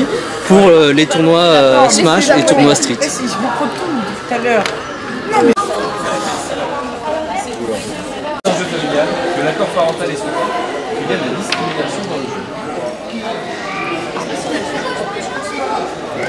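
People chatter in the background of a large echoing hall.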